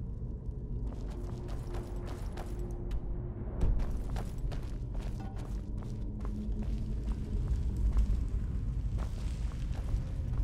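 Footsteps echo on a stone floor.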